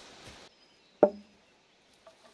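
A wooden post thuds heavily onto the ground.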